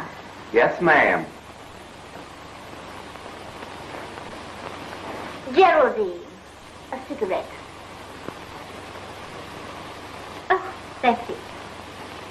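A woman speaks in short, lively bursts.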